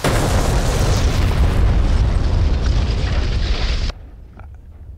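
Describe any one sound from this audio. An explosion booms and rumbles deeply.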